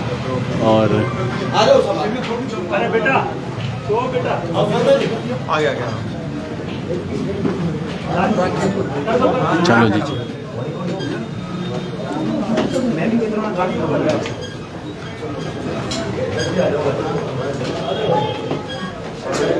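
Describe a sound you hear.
Footsteps shuffle up stairs.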